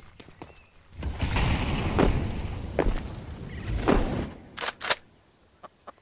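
Rifle gunfire bursts loudly in quick rattling shots.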